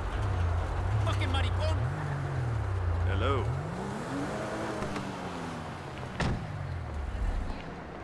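A car engine rumbles low, then revs up and settles.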